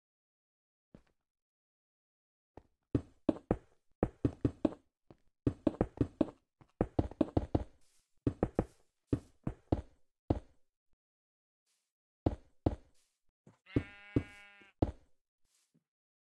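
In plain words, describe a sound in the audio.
A pickaxe chips and breaks stone blocks in quick, repeated knocks.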